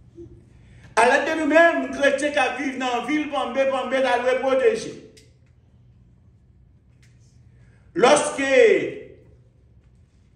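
A middle-aged man preaches with animation through a microphone.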